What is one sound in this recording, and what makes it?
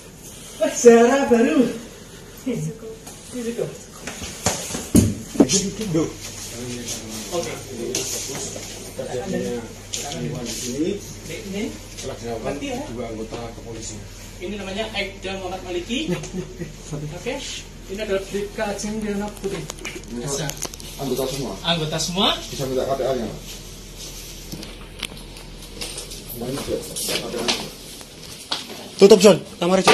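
Several men talk over one another, close by.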